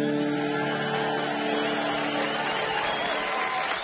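A folk band plays a lively tune.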